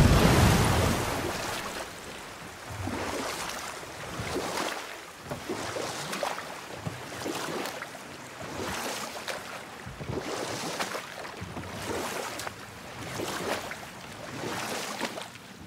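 Oars dip and splash in the water in a steady rhythm.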